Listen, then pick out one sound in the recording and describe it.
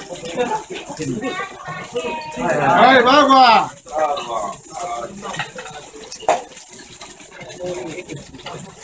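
Meat patties sizzle and crackle on hot iron plates.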